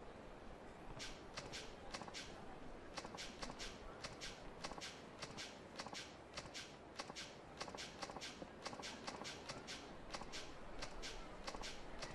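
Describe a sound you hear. Short electronic blips tick quickly and evenly in a video game.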